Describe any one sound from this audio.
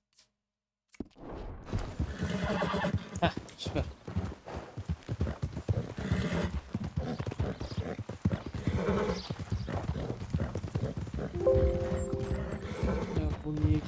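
A horse's hooves thud steadily as it gallops.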